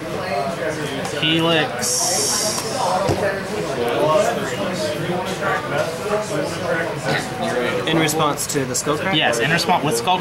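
Cards are laid down softly on a cloth mat.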